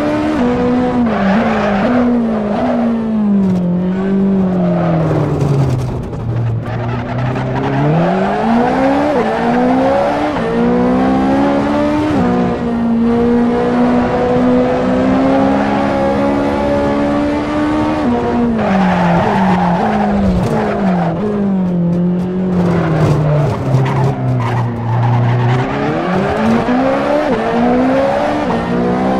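A sports car engine roars, revving up and dropping as the gears change.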